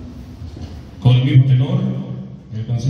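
A man speaks loudly through a loudspeaker.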